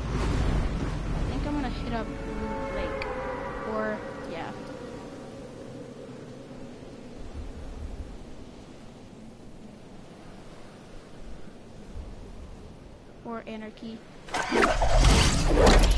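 Wind rushes steadily past during a fast freefall.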